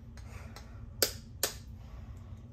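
A knife taps sharply against an eggshell, cracking it.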